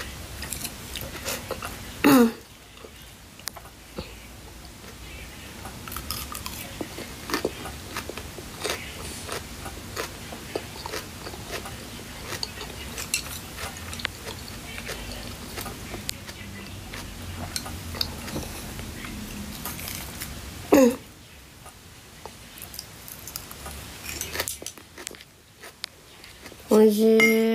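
A young woman crunches and chews crisp lettuce close by.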